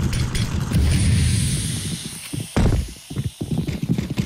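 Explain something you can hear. A smoke grenade hisses as it pours out smoke.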